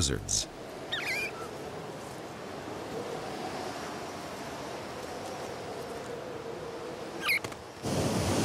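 A parrot chirps.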